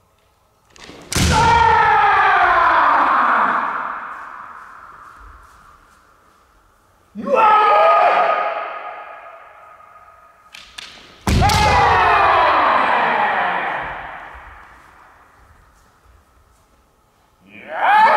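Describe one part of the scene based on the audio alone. Fencers shout loud, drawn-out battle cries that echo through a large hall.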